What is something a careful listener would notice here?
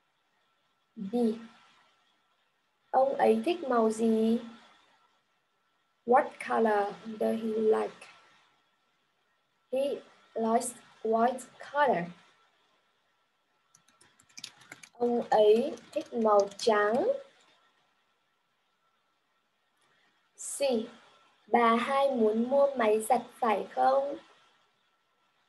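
A young woman speaks clearly in short phrases over an online call, with pauses between them.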